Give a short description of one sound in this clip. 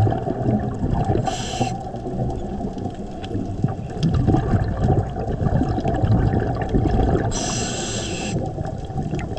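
A low underwater rumble murmurs steadily.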